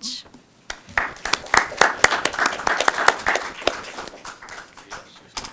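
A small group of people applauds.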